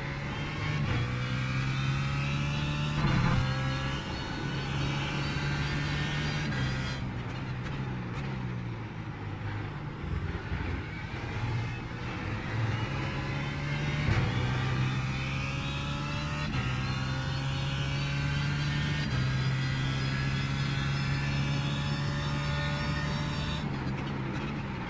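A racing car engine roars and climbs in pitch, dropping sharply at each gear change.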